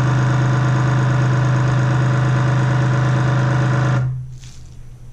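A vacuum sealer motor hums loudly and steadily, then stops.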